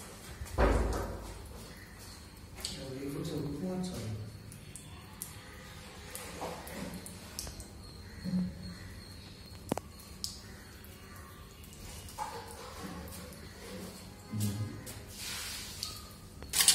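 A water purification machine hums steadily.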